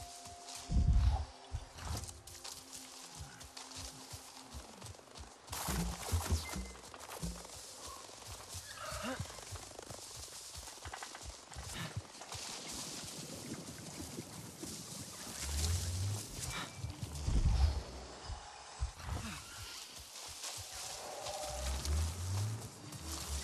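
Leaves and grass rustle as someone pushes through dense plants.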